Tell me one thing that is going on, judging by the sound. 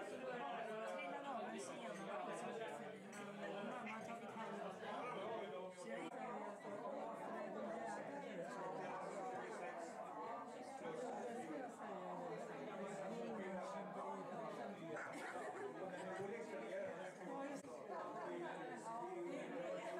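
Many elderly men and women chat over one another in a busy room.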